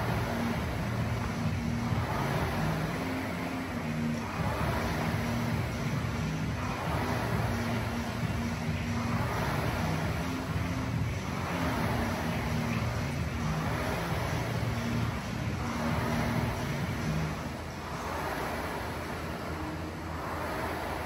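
A rowing machine's fan whooshes in a steady rhythm with each stroke.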